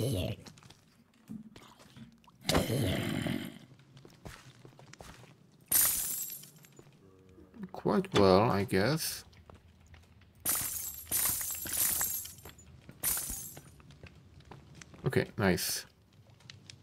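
Stone blocks crack and crumble as a pickaxe breaks them.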